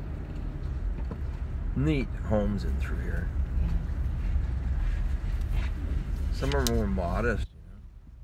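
A car engine hums steadily inside the cabin.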